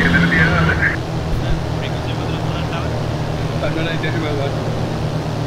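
A light plane's propeller engine drones steadily.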